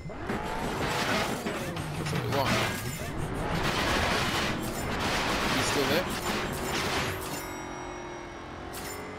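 A car engine in a video game revs as the car drives and turns.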